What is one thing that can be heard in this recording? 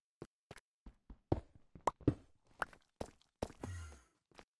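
A pickaxe taps repeatedly against stone.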